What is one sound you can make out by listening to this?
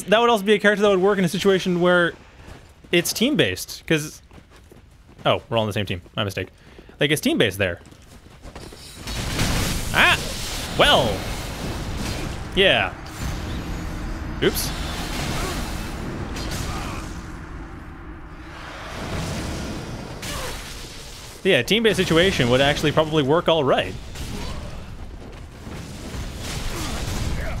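A sword swings and clashes.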